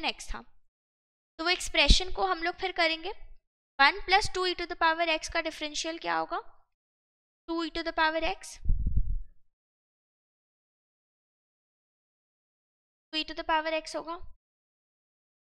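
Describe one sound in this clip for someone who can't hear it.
A young woman explains calmly and close to a microphone, in short bursts with pauses.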